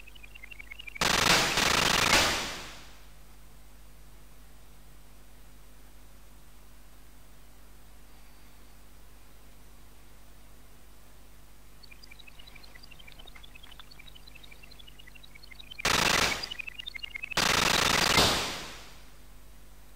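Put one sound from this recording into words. Loud hissing explosions roar and fade.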